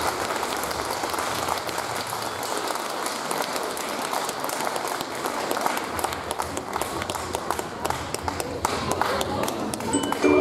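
Children's footsteps patter across a wooden stage.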